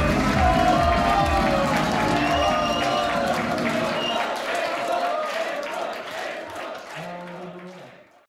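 A group of singers sings together through loudspeakers in a large hall.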